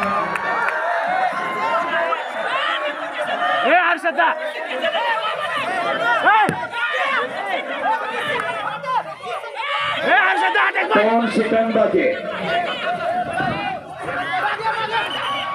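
A large crowd chatters and shouts loudly outdoors.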